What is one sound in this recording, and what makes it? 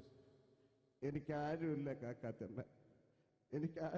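A man speaks quietly through a microphone.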